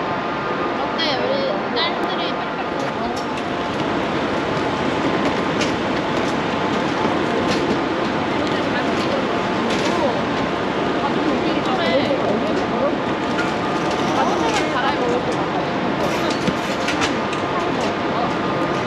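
Young women chat nearby.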